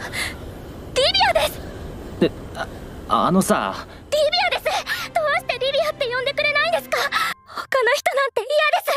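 A young woman speaks tearfully and with emotion.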